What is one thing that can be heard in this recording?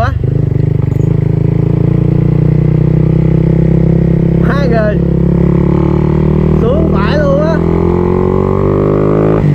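A motorcycle engine drones steadily, its pitch rising as it speeds up.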